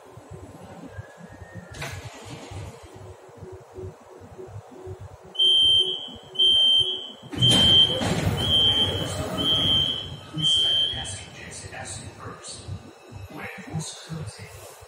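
A subway train rumbles and hums steadily.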